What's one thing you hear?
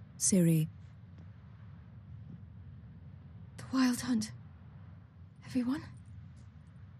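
A young woman speaks in short, halting bursts, close by.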